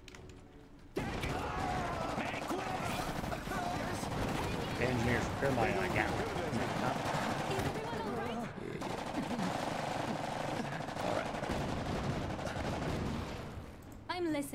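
Gunfire crackles in a battle.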